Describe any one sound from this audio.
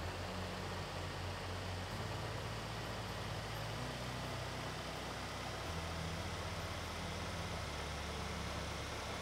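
A truck engine drones steadily, shifting pitch as the truck drives along a road.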